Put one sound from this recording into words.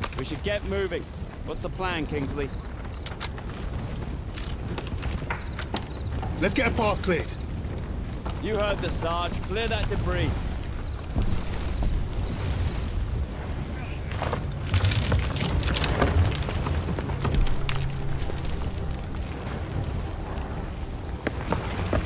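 Fire roars and crackles nearby.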